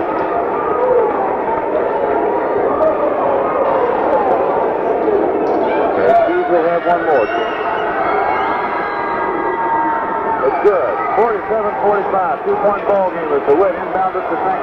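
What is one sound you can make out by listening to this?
A crowd chatters and calls out in a large echoing gym.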